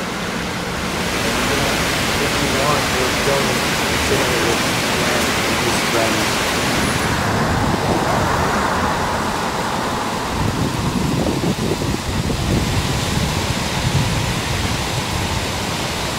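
A waterfall splashes and rushes steadily.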